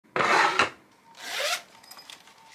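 A zipper on a pouch is pulled open.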